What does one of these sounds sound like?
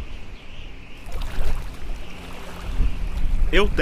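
Waves crash and splash against rocks close by.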